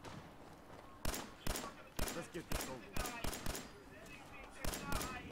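A laser rifle fires rapid shots.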